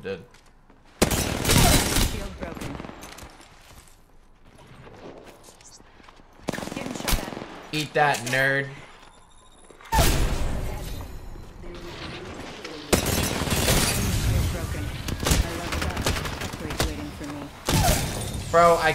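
Gunfire bursts rapidly in loud volleys.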